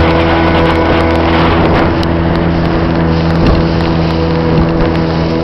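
A motorboat engine drones steadily close by.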